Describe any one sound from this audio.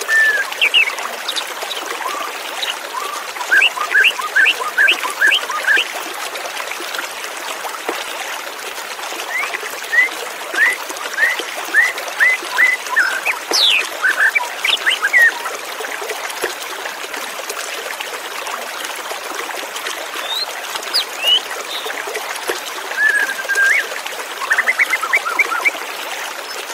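A white-rumped shama sings bursts of clear whistled phrases.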